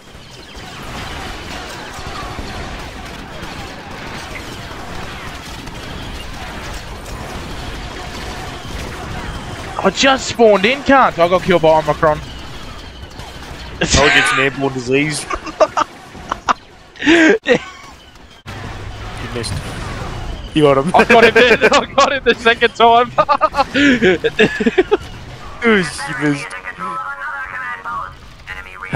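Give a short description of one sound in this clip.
Laser blasters fire in rapid bursts.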